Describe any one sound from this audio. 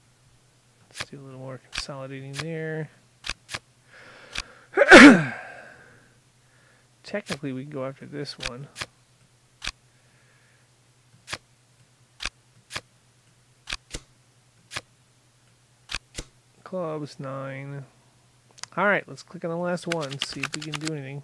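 Playing cards click softly as they are moved and dropped into place.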